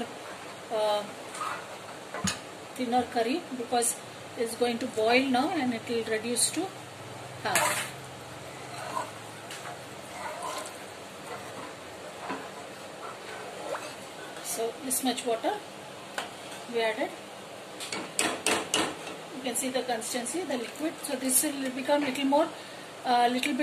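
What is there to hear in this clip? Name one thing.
A metal ladle scrapes and clinks against a pot.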